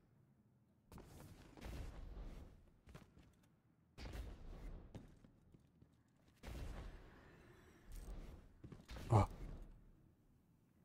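Boots thud and scrape on stone.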